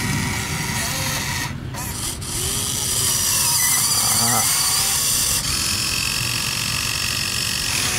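A toy excavator's bucket scrapes and digs into loose dirt.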